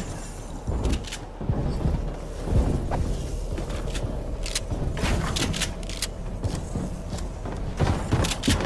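Building pieces snap into place with quick, sharp clicks over and over.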